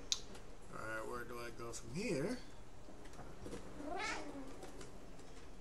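A cat meows.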